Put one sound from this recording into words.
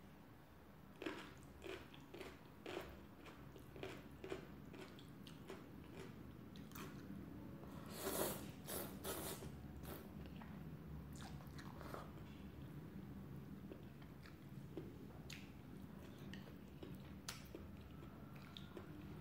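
A woman chews and smacks her lips softly, close up.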